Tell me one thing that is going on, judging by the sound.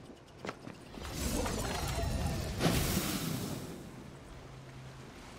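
A gun fires rapid energy bursts.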